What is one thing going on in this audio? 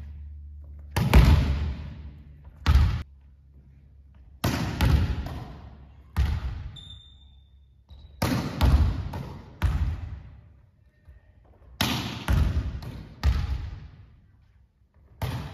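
A volleyball is struck hard and smacks with a ringing echo in a large hall.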